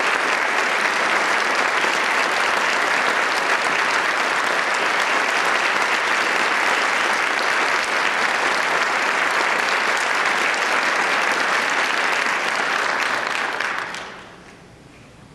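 An audience applauds loudly in a large hall, then the applause fades away.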